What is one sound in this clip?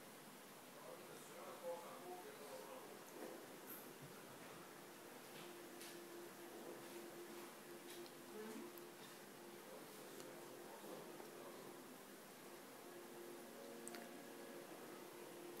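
A television plays a film soundtrack with quiet music.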